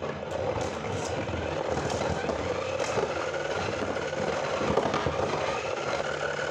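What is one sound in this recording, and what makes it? Spinning tops whir and scrape around a plastic arena.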